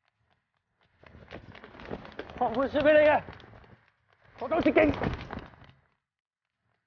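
A man shouts urgently while running.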